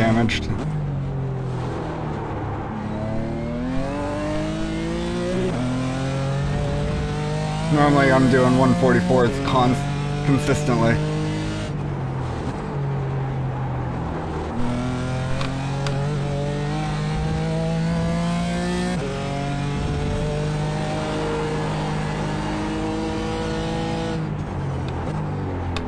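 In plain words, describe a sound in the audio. A racing car engine revs up and down through the gears.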